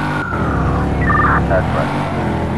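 Car tyres screech briefly on the road.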